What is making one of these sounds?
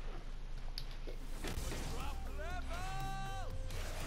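Game sound effects swoosh and chime as a character fights.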